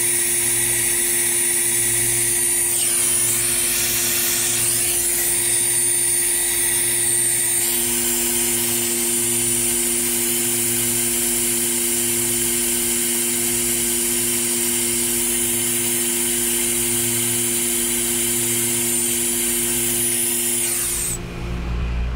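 A brazing torch hisses steadily up close.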